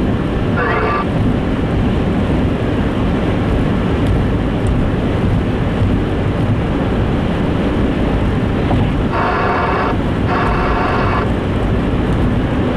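A car drives steadily along a highway, with a low rumble of tyres on wet road.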